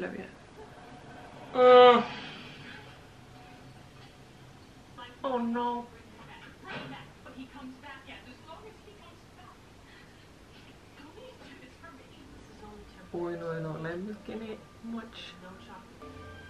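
A young woman speaks softly close by, with fright in her voice.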